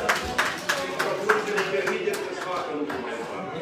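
People clap their hands rapidly.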